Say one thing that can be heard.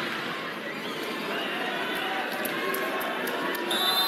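A volleyball bounces on the floor.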